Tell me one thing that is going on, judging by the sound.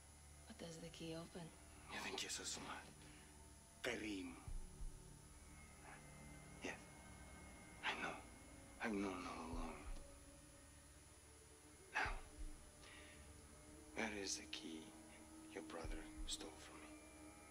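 A man speaks slowly and menacingly, close by.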